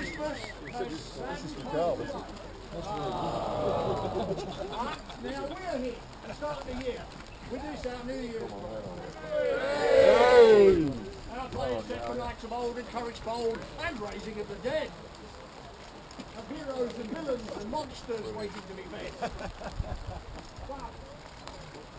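Rain patters on umbrellas.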